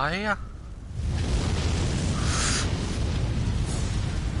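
A fire roars loudly.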